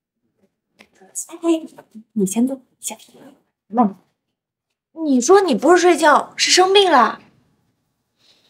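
A young woman speaks sharply, close by.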